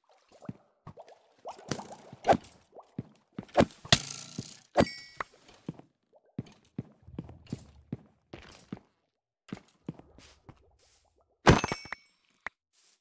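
A sword swings and strikes with sharp hits.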